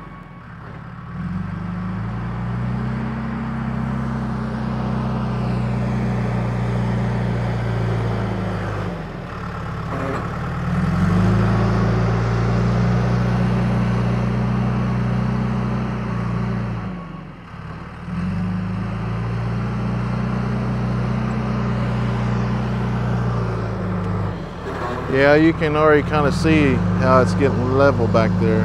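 A loader's diesel engine rumbles nearby, rising and falling in waves.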